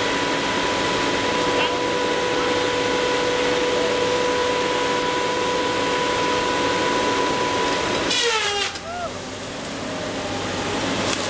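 A heavy machine's engine roars steadily close by.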